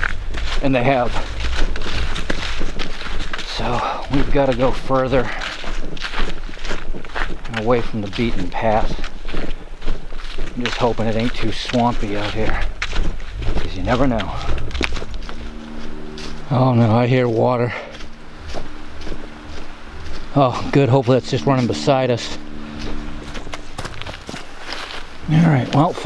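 Footsteps crunch through dry leaves.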